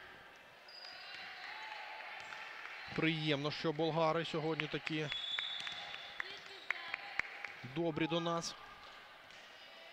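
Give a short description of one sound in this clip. A volleyball bounces on a wooden floor several times.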